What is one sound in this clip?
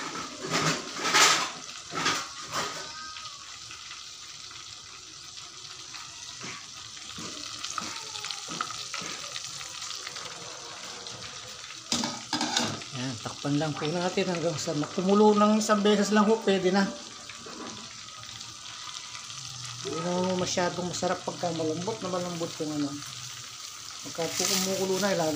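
Hot oil sizzles and crackles steadily in a pot.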